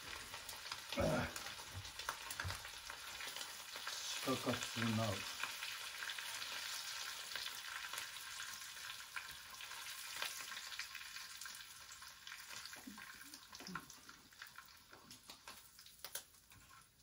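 Food sizzles and crackles in a frying pan.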